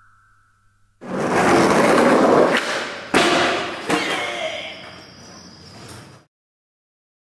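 Skateboard wheels roll loudly over pavement.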